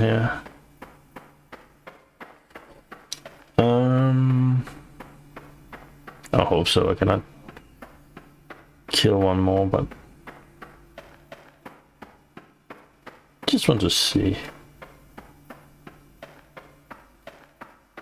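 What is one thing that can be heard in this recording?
Footsteps tread on gravelly ground at a walking pace.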